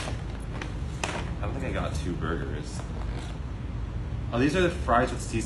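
Cardboard boxes tap and rustle as they are handled.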